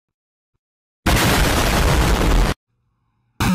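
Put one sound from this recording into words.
A large explosion roars and rumbles.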